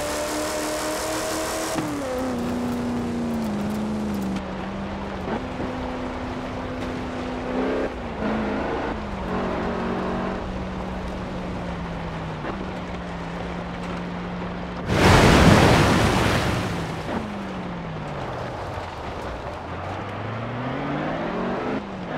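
An off-road vehicle's engine roars and changes pitch as it shifts gears.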